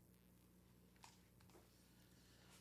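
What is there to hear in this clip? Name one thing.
Headphones rustle and click close to a microphone as they are handled.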